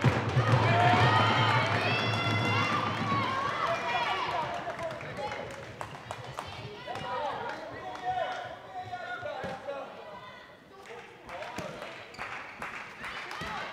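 A handball bounces on a hard floor.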